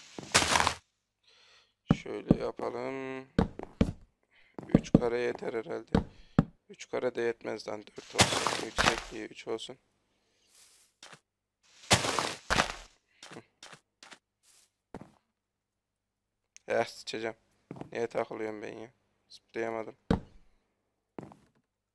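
Wooden blocks are set down with short, hollow knocks.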